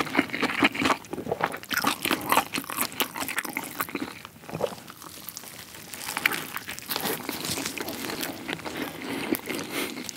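Lettuce crunches as a gloved hand squeezes it.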